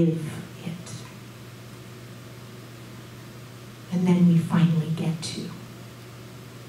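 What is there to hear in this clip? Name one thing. A woman speaks through a microphone over loudspeakers, in a room with some echo, with pauses between phrases.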